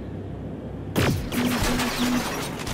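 Gunshots fire in rapid bursts.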